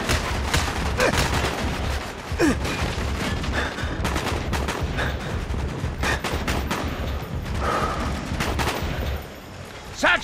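Rifle shots crack in rapid bursts.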